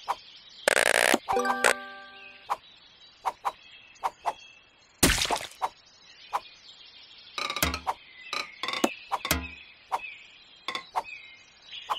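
Short electronic pops and chimes sound again and again as pieces break apart.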